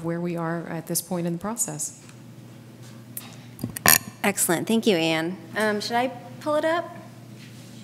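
A woman speaks through a microphone in a large room, with pauses.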